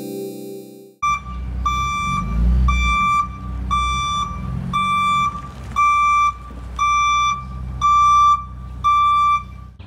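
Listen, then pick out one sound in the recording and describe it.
A van's engine rumbles low.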